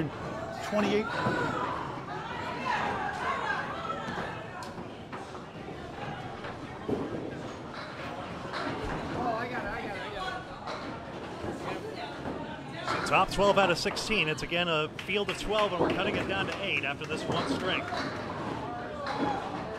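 A bowling ball rolls down a wooden lane with a low rumble.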